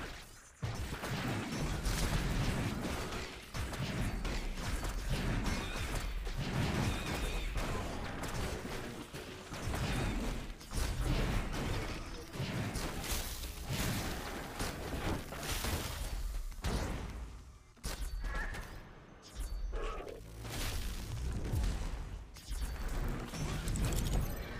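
Magic blasts, zaps and clashing hits of a fast battle game sound in quick bursts.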